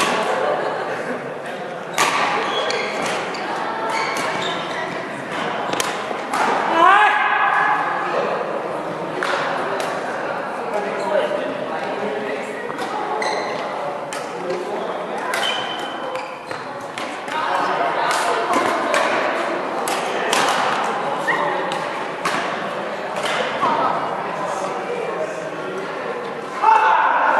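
Rackets hit a shuttlecock with sharp smacks in a large echoing hall.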